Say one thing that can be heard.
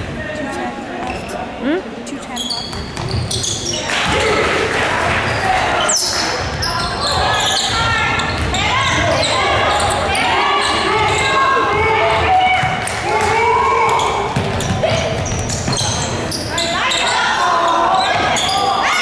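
Young players shout and call out to each other across the gym.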